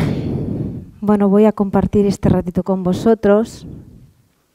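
A middle-aged woman speaks calmly into a headset microphone.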